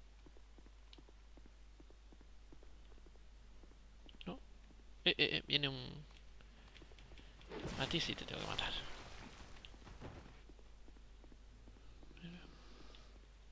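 Footsteps patter on a stone floor.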